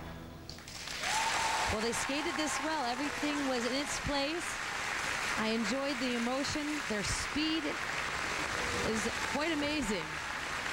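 A large crowd applauds and cheers in an echoing arena.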